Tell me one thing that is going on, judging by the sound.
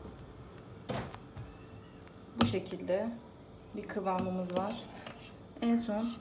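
A spoon clinks and scrapes against a metal bowl.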